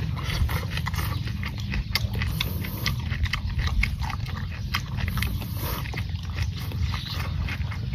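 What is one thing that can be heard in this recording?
A man chews and slurps food loudly.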